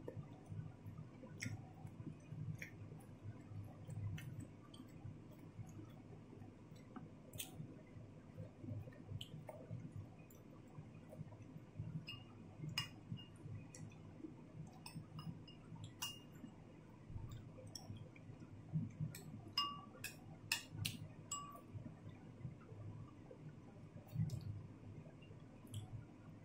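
A spoon clinks against a ceramic bowl.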